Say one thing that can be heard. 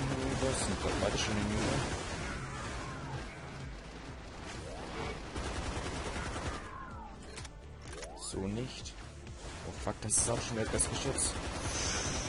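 A gun fires rapid energy shots.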